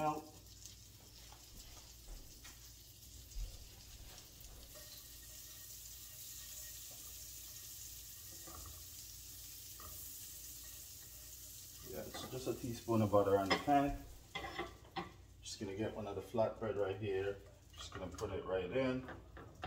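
Butter sizzles softly in a frying pan.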